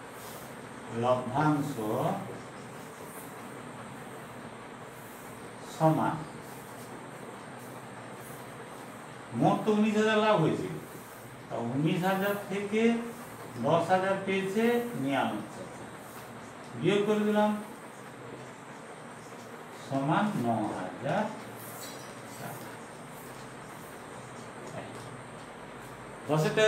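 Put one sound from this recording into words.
A man speaks calmly nearby in short phrases, as if explaining.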